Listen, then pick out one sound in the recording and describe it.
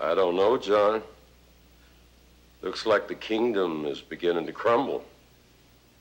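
A middle-aged man speaks in a low, serious voice close by.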